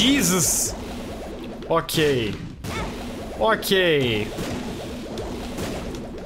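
A laser beam blasts with a roaring hiss.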